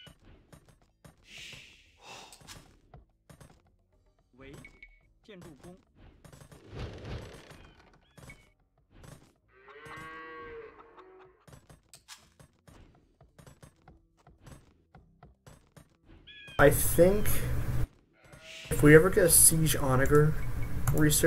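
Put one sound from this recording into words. Soft clicks and working sounds from a strategy game play.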